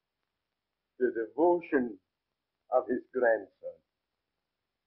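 An elderly man speaks warmly up close.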